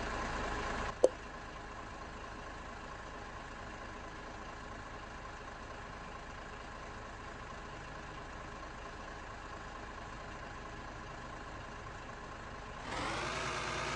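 A truck engine idles with a steady hum.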